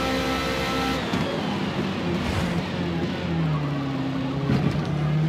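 A racing car engine winds down sharply as the car brakes hard.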